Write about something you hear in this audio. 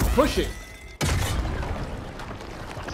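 A blast bursts with a loud boom.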